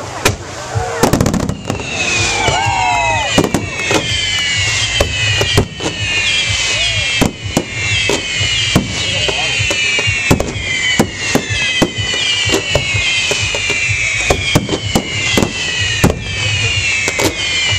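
Aerial fireworks burst with sharp booms overhead.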